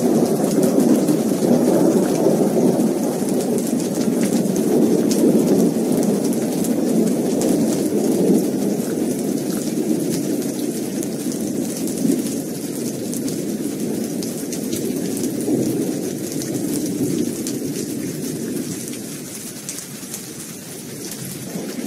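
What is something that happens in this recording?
Rainwater drips from a thatched roof edge.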